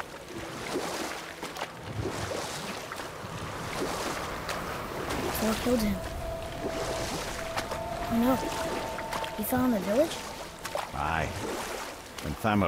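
Oars splash and pull through water at a steady pace.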